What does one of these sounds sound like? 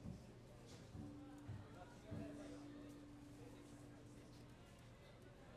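A saxophone plays a short melody.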